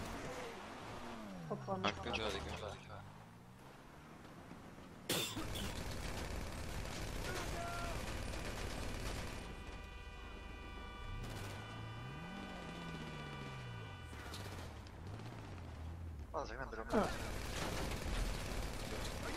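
Tyres skid and crunch on gravel.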